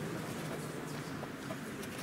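A paintbrush softly swishes across paper.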